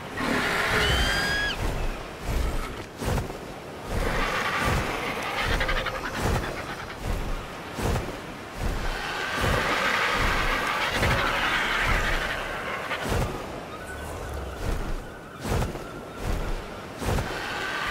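Large wings flap in steady, regular whooshing beats.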